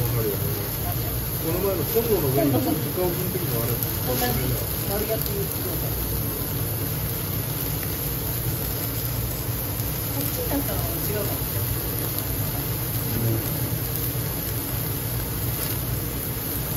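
Flames roar and crackle over a grill.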